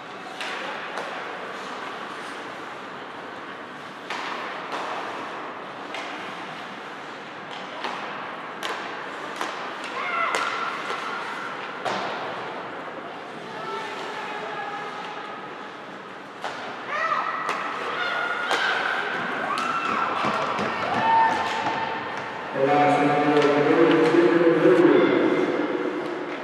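Hockey sticks clack against the puck now and then.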